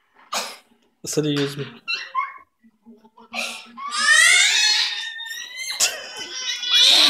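A young boy laughs close by.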